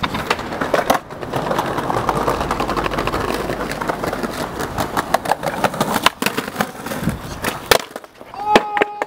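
A skateboard deck snaps and clacks against the ground.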